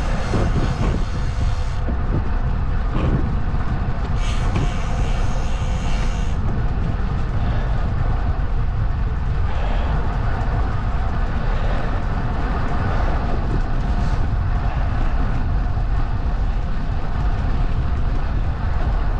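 Wind buffets and rumbles loudly outdoors.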